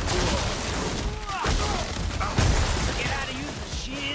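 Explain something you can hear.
Rocks crash to the ground.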